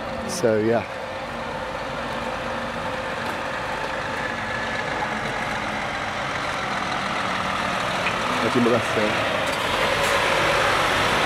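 A lorry engine rumbles louder as the lorry approaches.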